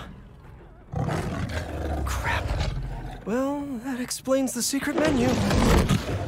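A tiger growls and roars loudly.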